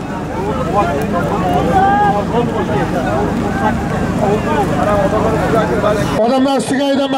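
A large crowd chatters and shouts outdoors.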